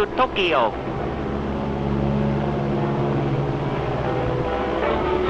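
An engine hums steadily.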